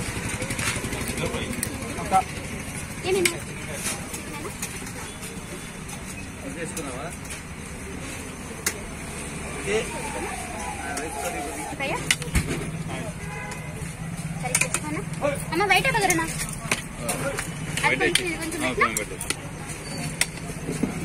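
A steel serving spoon clinks against steel pots.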